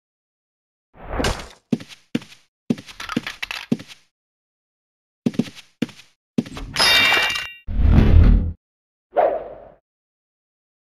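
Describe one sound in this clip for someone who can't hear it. A sword strikes bone in quick, repeated blows.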